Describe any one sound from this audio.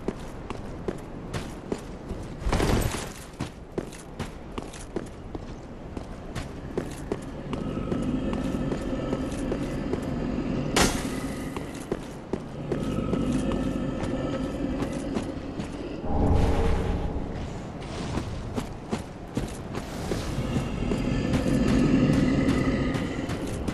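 Armoured footsteps clank on stone at a steady pace.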